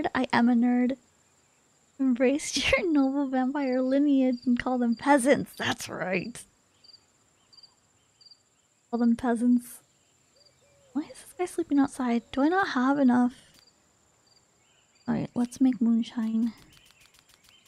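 A young woman talks with animation through a close microphone.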